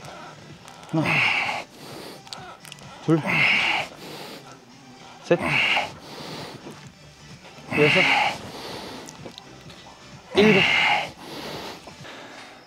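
A man grunts and exhales hard with effort, again and again.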